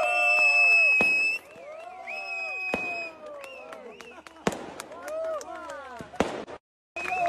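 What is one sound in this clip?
Fireworks bang and pop.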